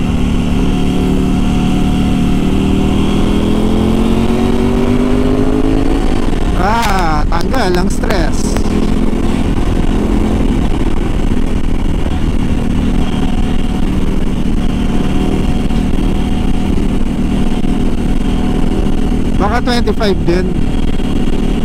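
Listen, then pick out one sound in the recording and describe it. A motorcycle engine hums steadily close by, rising in pitch as it speeds up.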